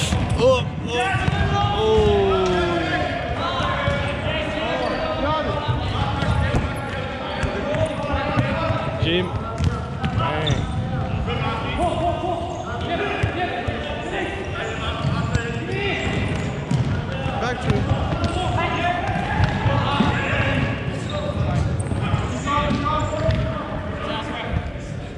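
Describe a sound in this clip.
A ball thuds against the floor and is kicked.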